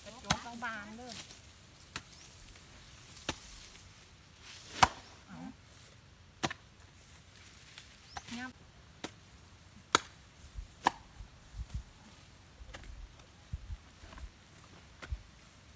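A hoe chops into grassy soil with sharp thuds.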